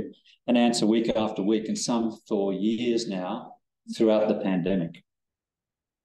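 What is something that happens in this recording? A man speaks calmly through a microphone, lecturing.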